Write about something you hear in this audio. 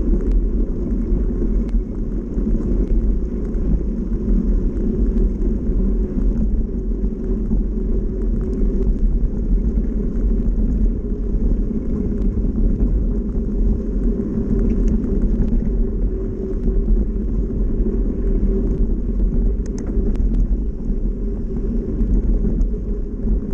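Small stones click and rattle under the tyres.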